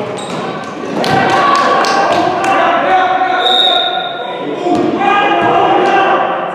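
Young men shout and call out across a large echoing hall.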